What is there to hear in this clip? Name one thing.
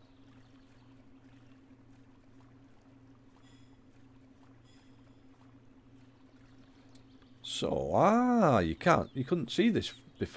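A paddle dips and splashes softly in calm water.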